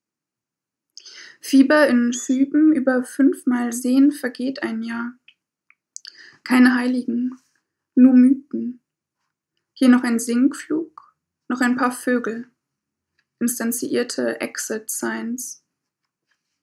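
A young woman reads aloud calmly and close by, heard through a microphone.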